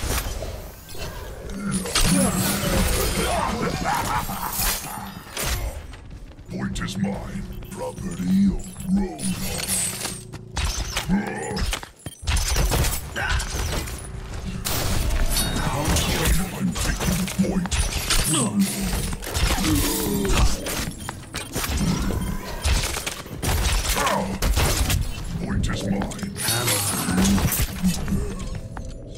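Video game gunfire and explosions go off in quick bursts.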